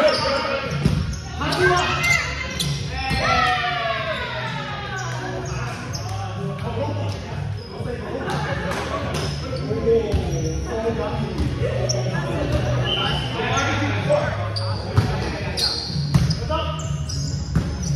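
Young men and women call out and chatter across the hall.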